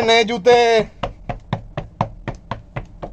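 Shoes tap quickly on a hard floor.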